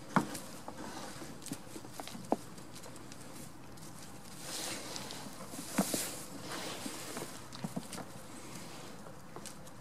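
Goats' hooves rustle through straw and dry ground outdoors.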